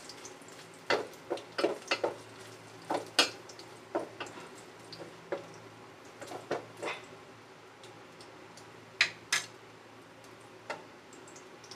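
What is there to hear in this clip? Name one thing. A wooden spoon scrapes and knocks against a metal pot.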